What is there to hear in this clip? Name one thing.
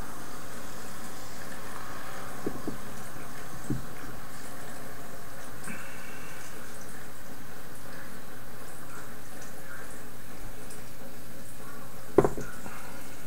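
A bottle clinks against a glass.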